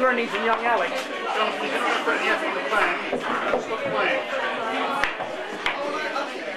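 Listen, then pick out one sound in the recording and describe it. Billiard balls knock sharply against each other.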